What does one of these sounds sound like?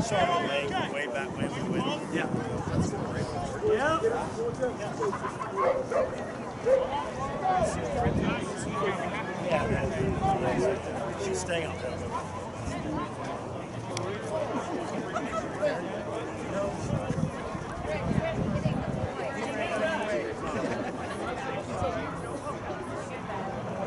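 A crowd of men and women on the sidelines shouts and cheers outdoors.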